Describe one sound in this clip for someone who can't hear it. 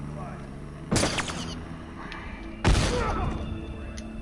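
Gunshots bang sharply a few times.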